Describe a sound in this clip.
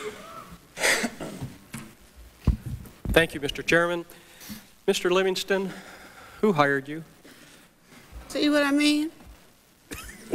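A middle-aged man speaks into a microphone.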